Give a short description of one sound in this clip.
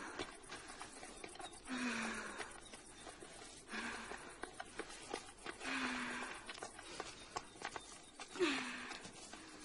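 Footsteps crunch and scrape on rocky ground.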